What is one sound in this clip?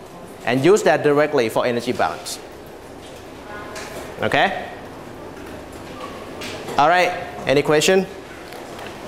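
A man speaks calmly through a clip-on microphone, in short bursts with pauses.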